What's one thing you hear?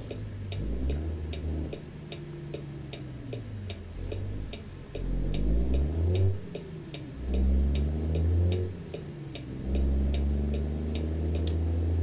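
A turn signal clicks steadily.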